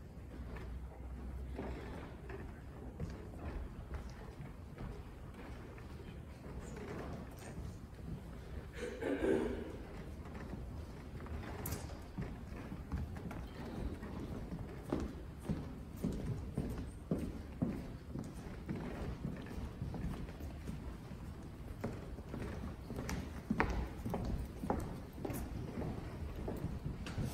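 Footsteps shuffle and tap on a floor in a large echoing hall.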